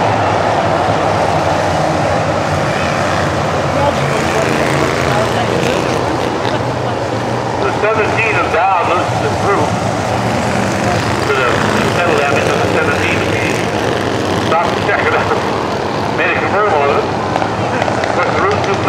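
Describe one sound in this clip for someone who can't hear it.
Race car engines roar and whine as cars speed past on a track.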